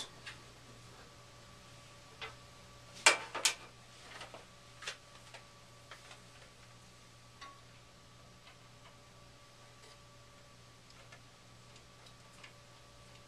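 A furnace hums steadily.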